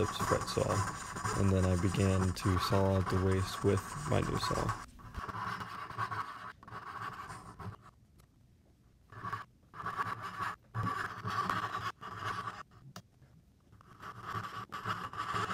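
A fine-toothed hand saw cuts back and forth through wood in short rasping strokes.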